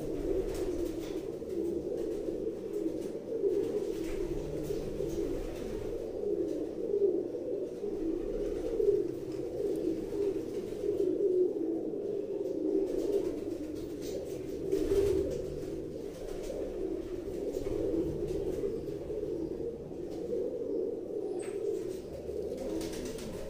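Domestic pigeons coo softly.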